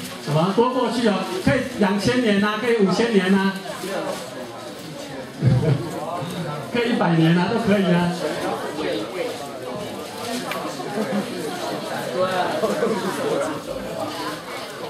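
A man speaks through a microphone in a large echoing hall, lecturing with animation.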